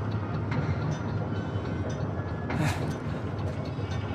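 A large iron wheel creaks and clanks as it is cranked.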